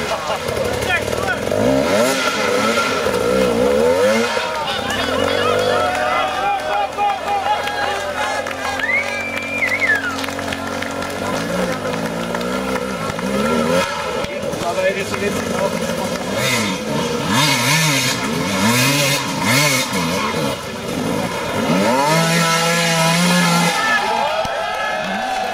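A dirt bike engine revs hard and sputters up close.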